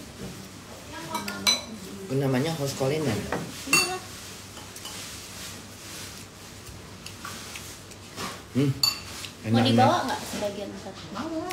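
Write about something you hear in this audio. A woman eats with her hands.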